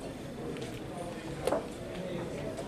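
A chess piece is set down on a wooden board with a light click.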